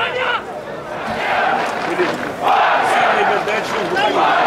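A stadium crowd cheers and chants.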